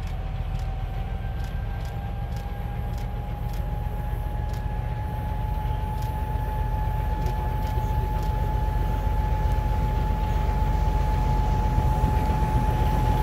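Wheels clatter rhythmically on the rails.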